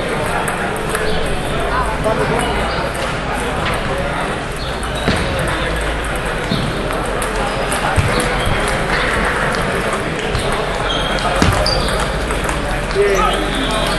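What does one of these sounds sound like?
A table tennis ball clicks against paddles and the table.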